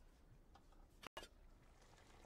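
A lid clinks against a metal pot.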